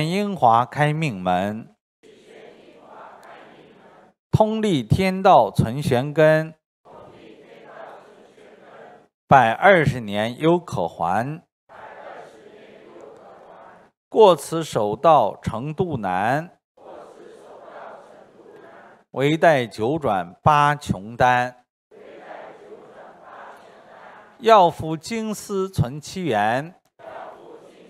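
A middle-aged man reads aloud into a microphone in short bursts.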